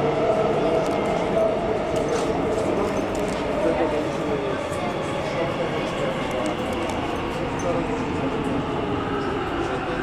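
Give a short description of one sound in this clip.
A subway train rumbles and rattles loudly along the tracks.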